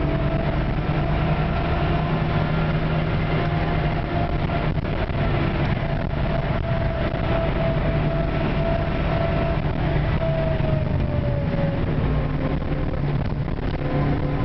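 Tyres rumble on asphalt.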